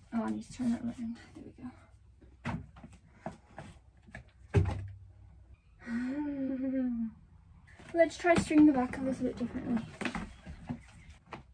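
A board knocks and bumps against a wall.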